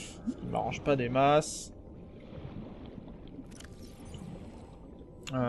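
A low underwater rumble murmurs steadily.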